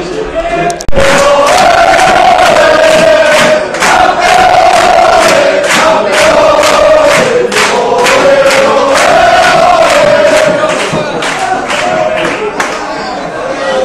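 A crowd of fans claps along in a steady rhythm.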